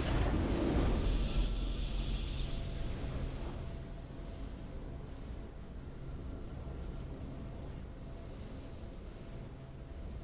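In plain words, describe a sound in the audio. A triumphant musical fanfare swells and then quietly holds.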